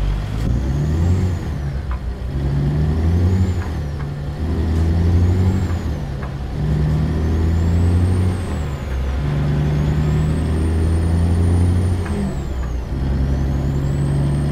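A truck's diesel engine rumbles steadily and its pitch rises and drops as the gears change.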